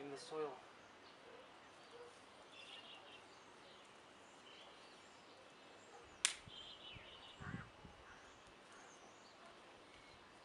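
Hands scrape and pat loose soil close by.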